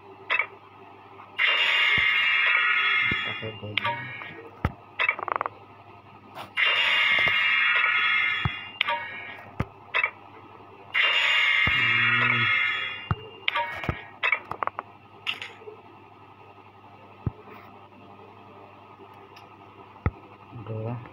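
Short menu clicks tap now and then.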